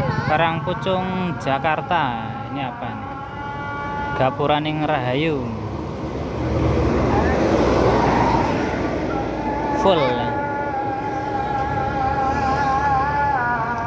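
A bus horn plays a loud warbling tune of notes.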